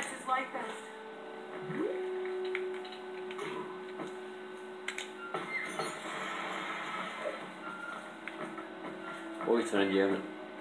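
Video game music plays quietly through a television speaker.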